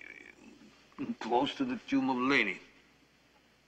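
A middle-aged man speaks firmly and slowly, close by.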